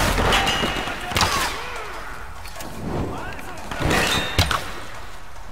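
Sparks burst and crackle sharply.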